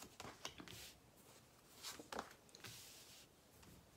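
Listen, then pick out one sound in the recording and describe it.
Cards are laid down on a table with soft taps.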